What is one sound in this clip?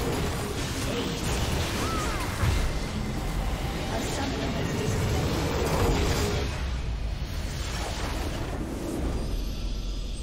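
Game spell effects crackle and clash loudly in a busy battle.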